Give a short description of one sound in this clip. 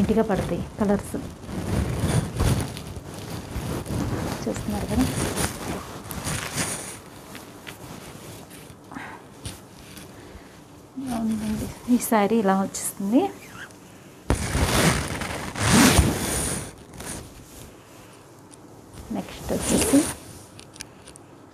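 Fabric rustles as a sari is handled.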